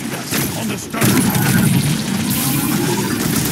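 Fiery blasts burst with a crackling roar.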